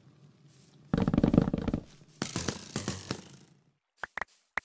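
Blocks crumble and shatter with a loud crunching burst.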